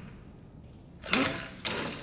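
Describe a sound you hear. Bolt cutters snap through a metal chain with a sharp clank.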